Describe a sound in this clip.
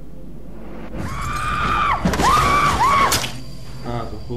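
A woman screams in terror.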